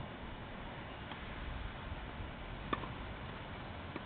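A tennis ball is struck with a racket nearby.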